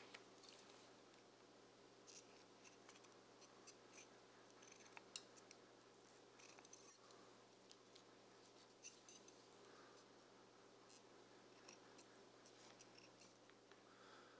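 Scissors snip through leather.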